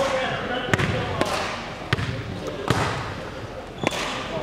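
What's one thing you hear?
Sneakers squeak and thud on a hard court in a large echoing hall.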